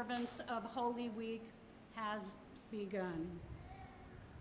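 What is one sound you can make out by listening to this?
A woman speaks calmly into a microphone in a large, echoing room.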